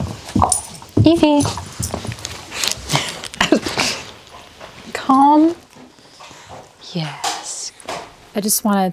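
A dog whines and yelps in high, wavering cries.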